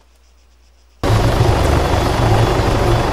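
A helicopter's rotor thumps and its engine roars close by.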